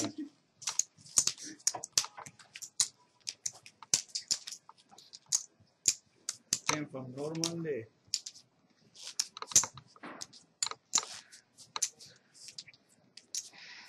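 Playing cards are shuffled and dealt with soft snaps.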